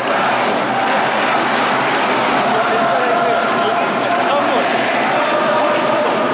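A large stadium crowd chants and sings loudly and steadily.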